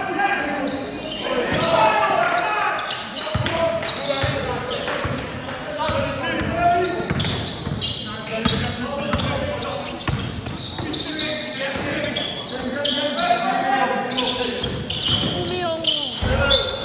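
A basketball bounces on a court in an echoing hall.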